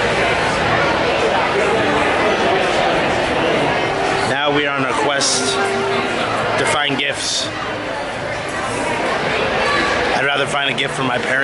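A crowd murmurs in the background of a busy indoor space.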